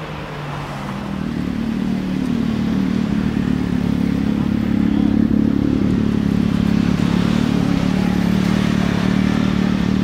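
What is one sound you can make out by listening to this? A sports car engine idles with a deep, rumbling burble close by.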